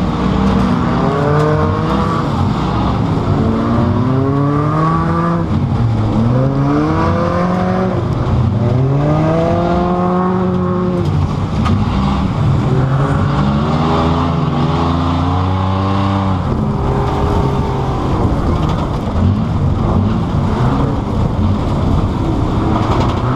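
Loose parts rattle and clatter inside a car as it bounces over rough ground.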